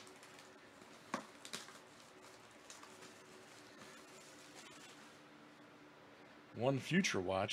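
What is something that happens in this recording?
Plastic shrink wrap crinkles as it is peeled off a cardboard box.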